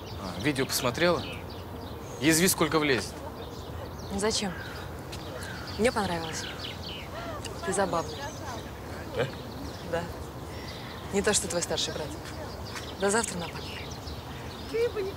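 A young man speaks casually close by.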